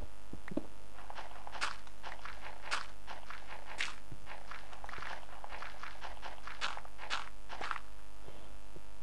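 A pickaxe digs through dirt with quick crunching thuds.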